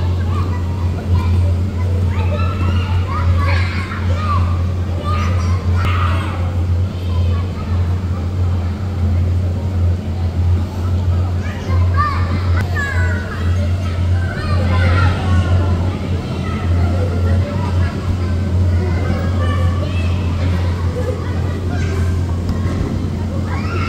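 Young children chatter and shout nearby in a large echoing hall.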